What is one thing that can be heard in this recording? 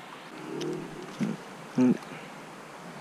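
A small lure plops into calm water close by.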